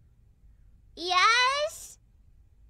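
A young woman lets out a high-pitched, rising startled exclamation into a microphone.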